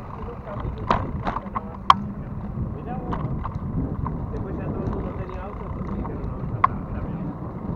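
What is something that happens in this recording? A bicycle rattles and clicks over the road.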